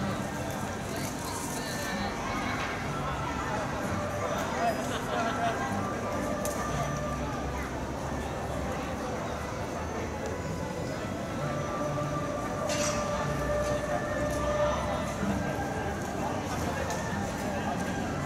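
A large mat rolls and scrapes across a hard floor.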